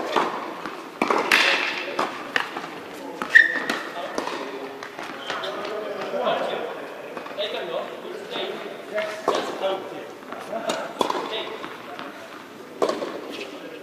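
A tennis ball is struck with a racket, with sharp pops echoing in a large hall.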